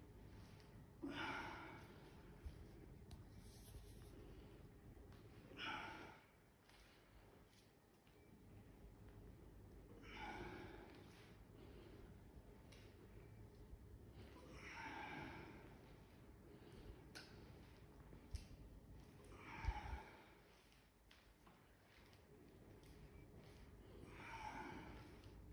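A man breathes out hard, close by, with each stretch.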